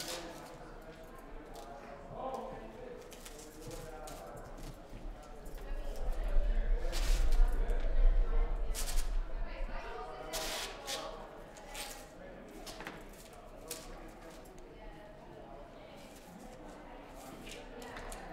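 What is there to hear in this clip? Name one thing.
Cloth and tape rustle on a wooden floor.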